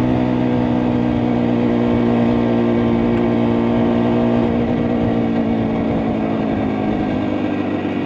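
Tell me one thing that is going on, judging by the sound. A motorcycle engine hums steadily close by as the bike rides along.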